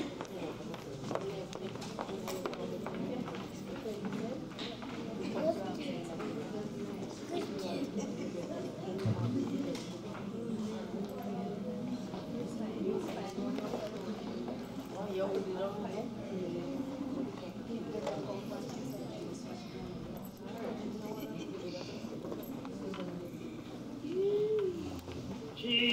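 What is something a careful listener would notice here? A small choir of men and women sings together in a large echoing hall.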